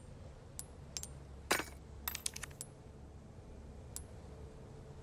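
Soft menu clicks and chimes tick in quick succession.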